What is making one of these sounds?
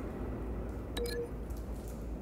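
A short electronic beep sounds.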